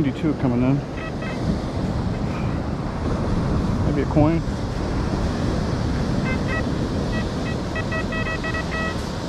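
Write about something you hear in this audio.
A metal detector beeps in short, high electronic tones.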